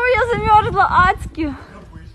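A woman shouts excitedly nearby.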